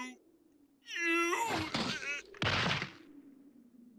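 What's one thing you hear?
A man cries out in alarm.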